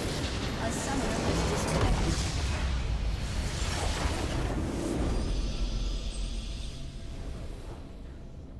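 A huge explosion roars and rumbles, then fades.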